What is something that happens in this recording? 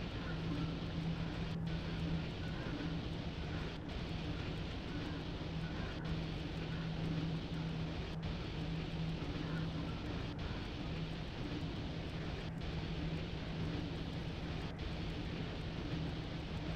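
Train wheels rumble and clack on the rails.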